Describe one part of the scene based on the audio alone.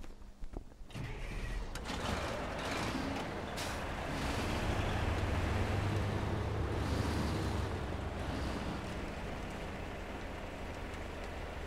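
A truck engine rumbles steadily as the truck drives.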